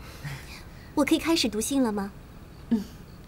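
A young man asks a question cheerfully.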